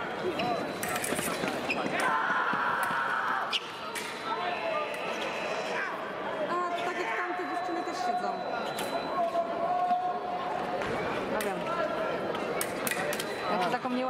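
Fencers' feet thump and squeak quickly on a hard floor.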